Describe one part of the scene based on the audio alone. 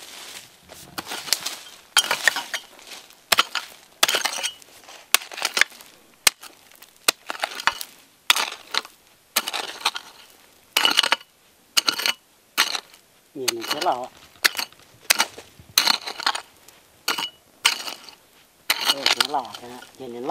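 A hoe strikes and scrapes into dry, stony soil again and again.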